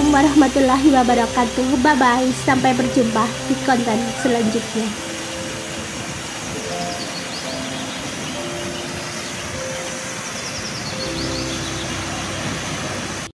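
Water from a waterfall pours down steadily and splashes.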